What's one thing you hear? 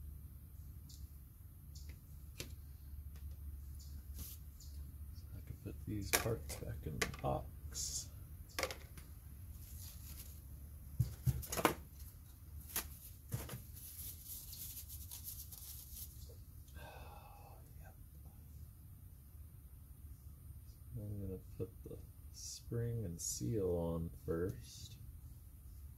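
Small metal parts click and clink against a hard surface.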